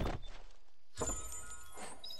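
An item bursts open with a bright chime.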